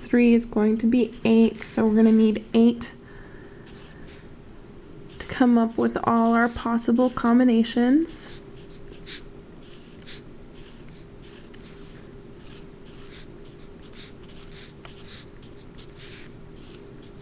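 A marker squeaks and scratches on paper.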